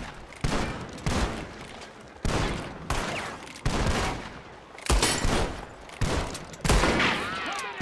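Gunshots crack loudly, one after another, with echoes.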